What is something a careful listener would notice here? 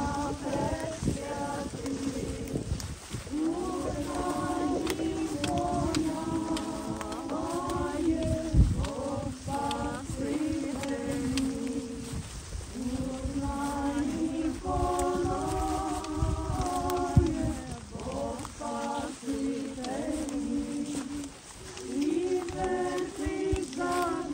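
A large crowd of men and women sings together slowly outdoors.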